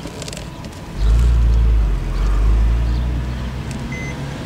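A car engine revs up loudly twice in quick succession.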